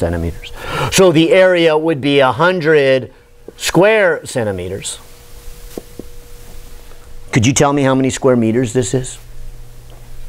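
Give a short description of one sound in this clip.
An older man speaks with animation.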